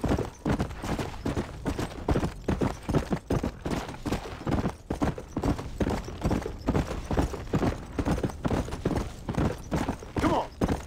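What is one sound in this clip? A horse's hooves pound rapidly over grassy ground at a gallop.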